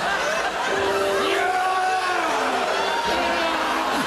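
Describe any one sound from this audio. A man shouts loudly.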